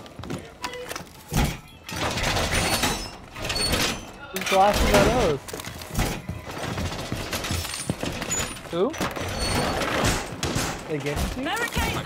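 Wooden barricades bang and rattle as they are set into place.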